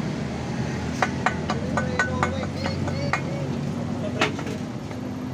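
Metal parts clank and knock together.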